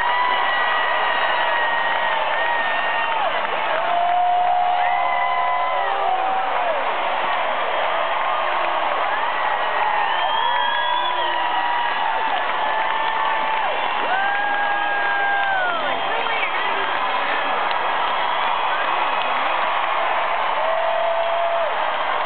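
A large crowd cheers and shouts loudly in a big echoing arena.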